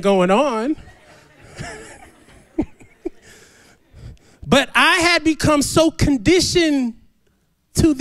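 A man preaches with animation into a microphone over loudspeakers.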